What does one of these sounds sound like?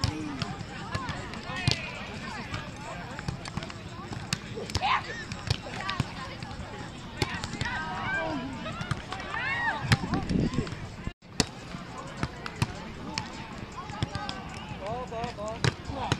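A volleyball thumps off players' hands and forearms.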